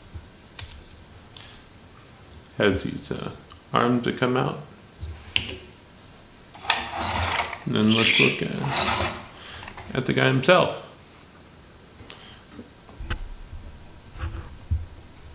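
Plastic toy parts click and snap as they are handled.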